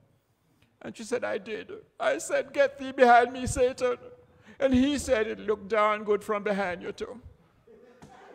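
An elderly man preaches with animation through a microphone in an echoing hall.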